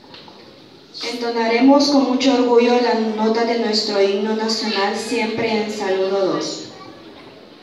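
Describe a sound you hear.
Young children's voices recite together in unison.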